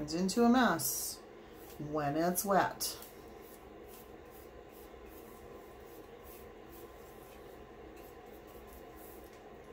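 A brush softly strokes paint onto a metal cup.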